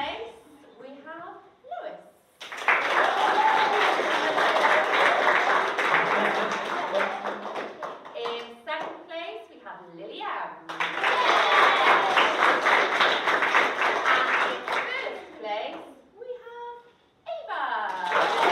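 A woman speaks to a room of children, clearly and with animation.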